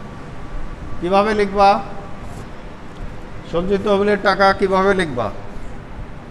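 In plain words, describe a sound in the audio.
A young man speaks loudly and clearly, close by.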